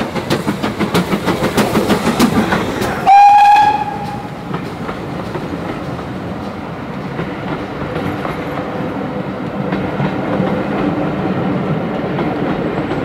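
Railway carriages rumble and clatter over the rails.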